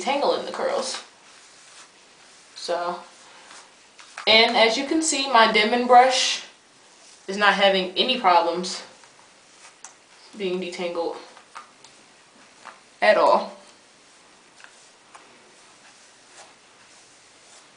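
A brush rustles through dry hair.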